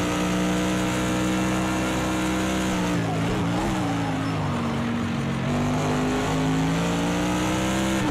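A racing car engine roars steadily at high revs.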